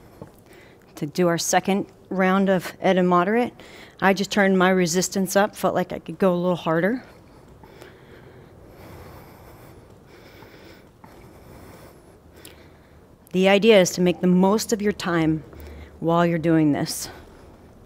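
A young woman speaks calmly and clearly into a nearby microphone.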